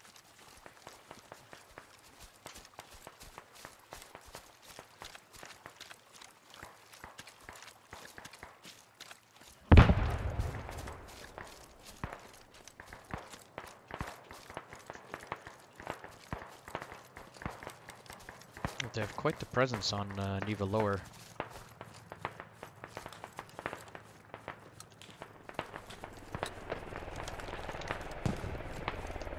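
Footsteps rustle through dry grass and brush.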